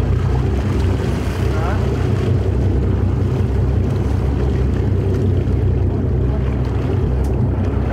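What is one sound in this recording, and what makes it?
Water splashes and churns at the surface close by.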